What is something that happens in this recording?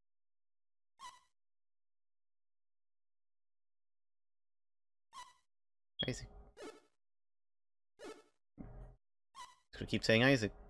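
Short electronic beeps sound now and then.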